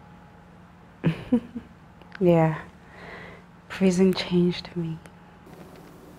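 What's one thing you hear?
A young woman speaks softly and with amusement, close by.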